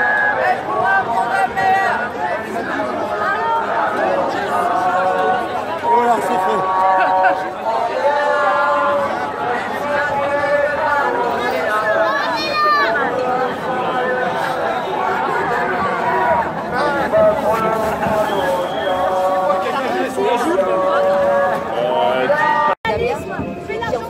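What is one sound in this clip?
A crowd of people talks and chants loudly outdoors.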